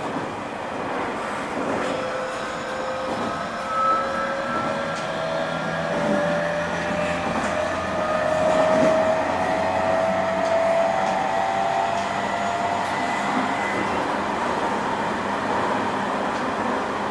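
An electric train hums steadily.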